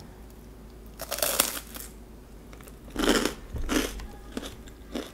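Bread crust crackles as it is torn.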